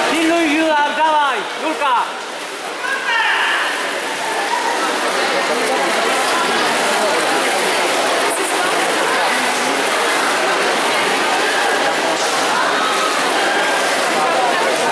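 Swimmers splash through the water.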